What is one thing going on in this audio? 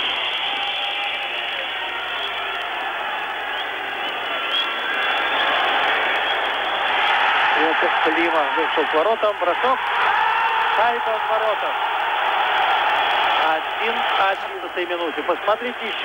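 A large crowd cheers and roars in a large indoor arena.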